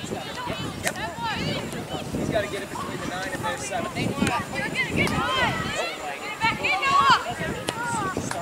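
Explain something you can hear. Young players shout to each other outdoors on an open field.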